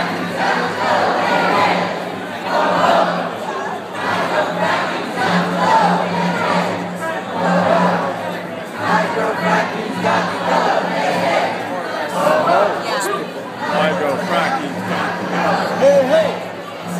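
Many voices of men and women talk and shout over one another nearby.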